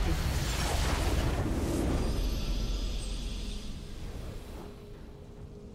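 A triumphant game fanfare blares and then fades away.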